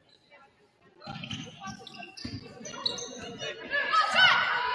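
A crowd of spectators calls out and cheers in a large echoing gym.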